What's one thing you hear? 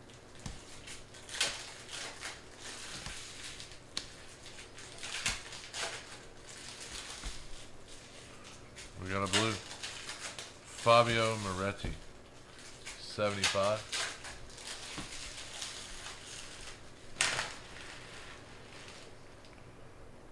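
Trading cards rustle and flick as they are shuffled by hand.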